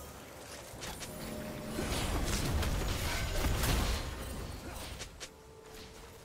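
Spell effects whoosh and crackle in a video game fight.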